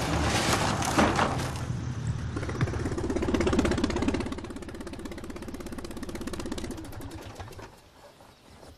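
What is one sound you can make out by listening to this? A small propeller plane's engine drones loudly and then fades away.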